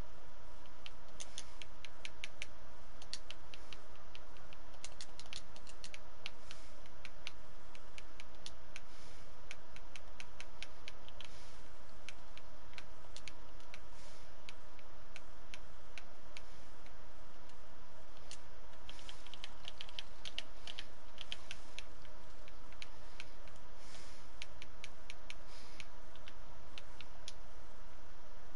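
Soft game menu clicks tick quickly, again and again.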